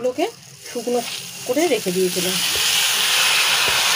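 Dry rice grains pour into a metal wok.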